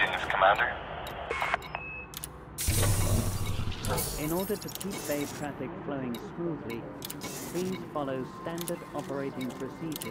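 Menu selections click and beep.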